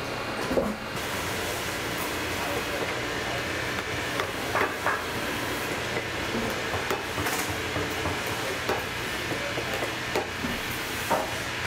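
A sharp tool scrapes and clicks against leather.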